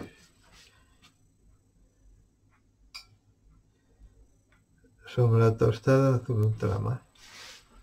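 A paintbrush swishes and taps on a paint palette.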